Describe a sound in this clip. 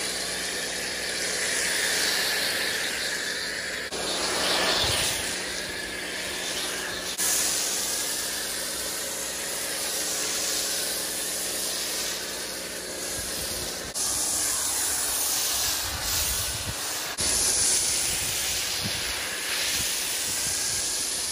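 A pressure washer sprays foam onto a car with a steady loud hiss.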